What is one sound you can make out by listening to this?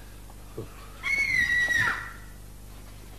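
A little girl screams shrilly.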